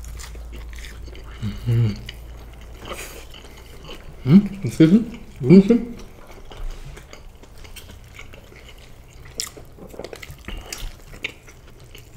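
A young man chews food noisily with his mouth close to a microphone.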